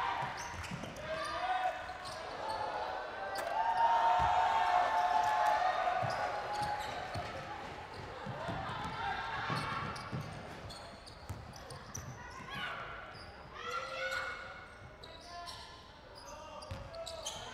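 Sneakers squeak sharply on a hardwood floor in a large echoing hall.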